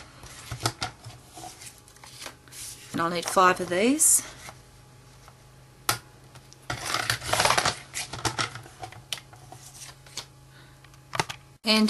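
A paper trimmer blade slides along, cutting through card.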